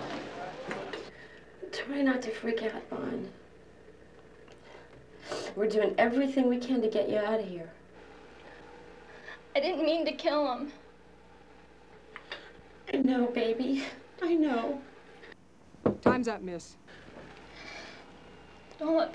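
A woman speaks softly and emotionally, close by.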